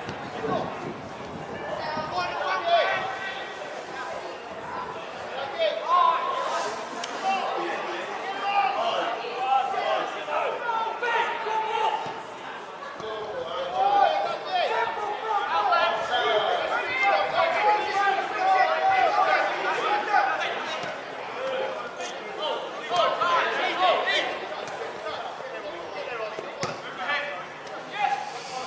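Young players shout and call to each other across an open field outdoors.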